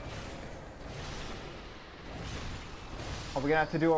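Blades swish and strike in a short fight.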